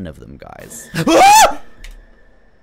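A young man shrieks loudly into a microphone.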